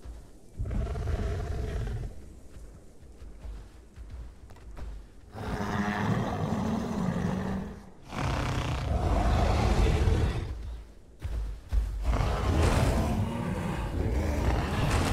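A large creature growls and roars loudly in bursts.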